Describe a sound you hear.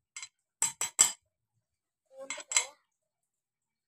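Small metal parts of a hand press clink and tap together.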